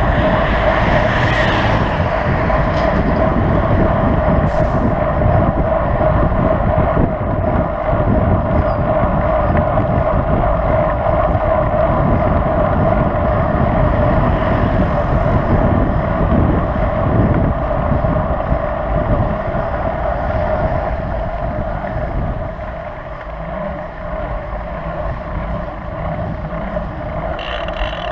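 A motor whines steadily.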